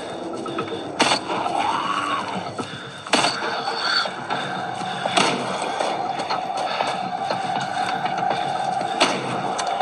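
Gunshots boom from a game, one every few seconds.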